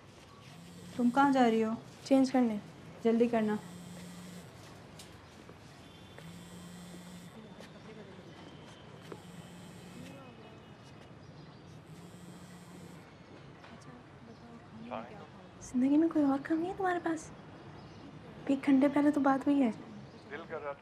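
A young woman speaks quietly and urgently, close by.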